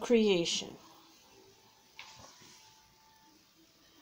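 A page of a book turns with a soft rustle.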